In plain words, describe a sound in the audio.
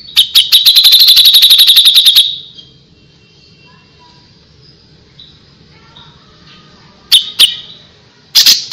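A small songbird sings a rapid burst of loud, sharp chirps, then calls again a few times.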